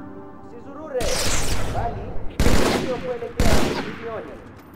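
A rifle fires a few loud, sharp shots that echo briefly.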